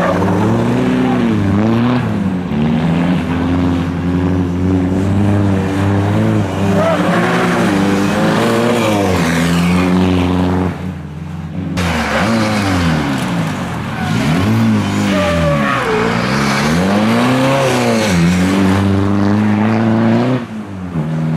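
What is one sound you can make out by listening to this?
A rally car's engine revs hard up and down close by.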